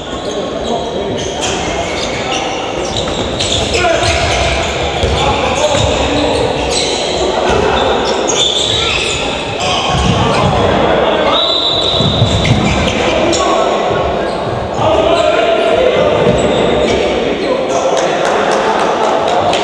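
A ball bounces on the court.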